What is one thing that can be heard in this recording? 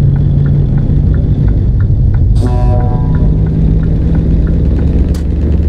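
A turn signal ticks in quick, regular clicks.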